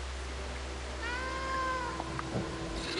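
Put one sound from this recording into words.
A cat meows briefly.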